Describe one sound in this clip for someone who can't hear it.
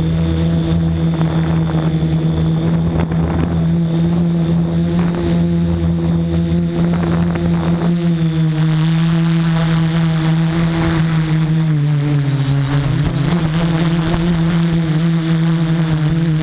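Water pours and splashes down a tall waterfall.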